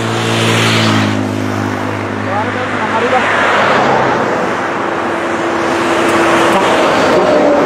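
Tyres hiss on the road surface.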